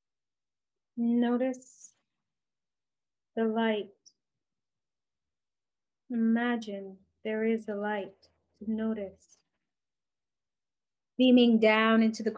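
A woman speaks calmly and softly into a microphone, with pauses between phrases.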